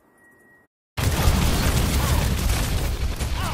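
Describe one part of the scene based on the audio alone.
Rapid gunfire rattles amid loud battle noise.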